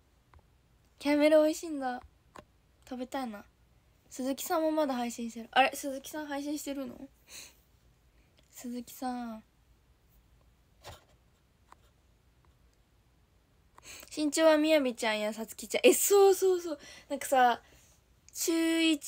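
A young woman talks with animation, close to a phone microphone.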